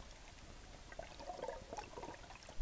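Water churns and bubbles near the surface.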